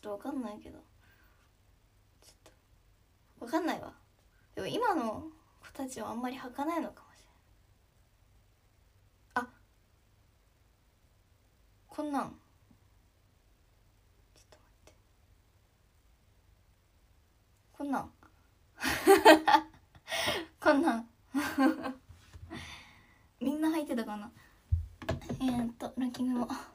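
A young woman speaks softly and close by, in short bursts with pauses.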